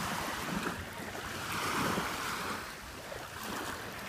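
Bare feet crunch softly on wet sand.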